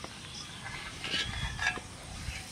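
A metal sieve scrapes and clinks against a metal pot.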